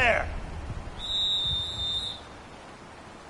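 A whistle blows shrilly.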